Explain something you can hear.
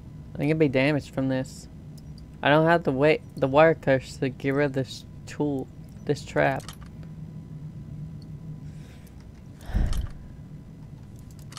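A metal pick scrapes and clicks inside a door lock.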